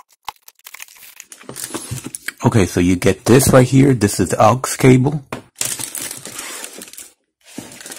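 A cardboard box rustles.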